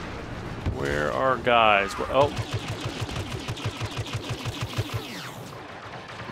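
Rapid blaster fire shoots in quick bursts.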